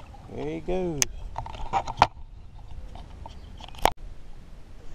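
Metal clanks sharply on a boat.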